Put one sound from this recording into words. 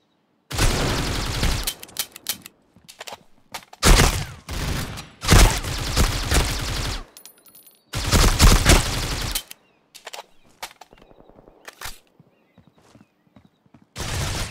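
Rapid bursts of rifle fire ring out in a game.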